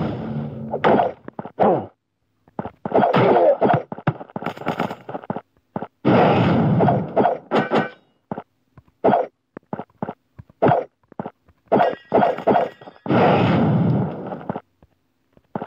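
Blades swish and strike in quick, sharp bursts.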